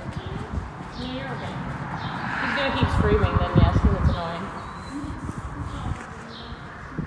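Hooves thud softly on sand.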